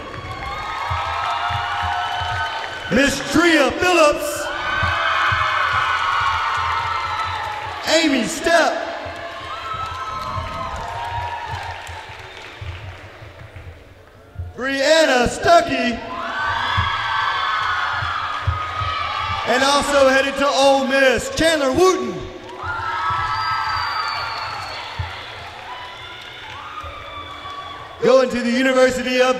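A crowd of teenagers cheers and whoops in an echoing gym.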